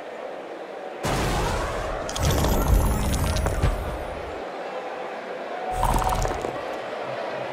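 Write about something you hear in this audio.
Loud thuds and crashes burst out during a brawl.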